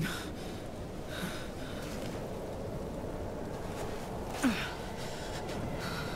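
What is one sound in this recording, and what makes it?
A young woman gasps and breathes heavily up close.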